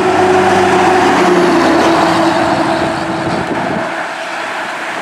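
A heavy truck engine rumbles past.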